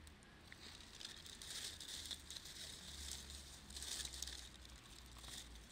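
Dry leaves rustle as they are dropped by hand.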